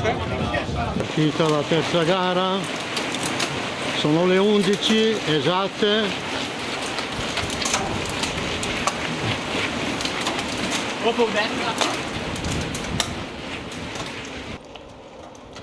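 Bicycles rattle and click past over cobbles.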